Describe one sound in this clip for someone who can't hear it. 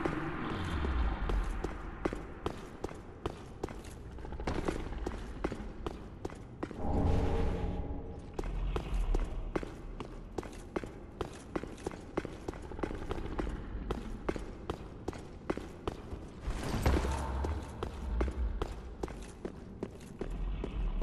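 Armoured footsteps clank quickly and steadily on stone.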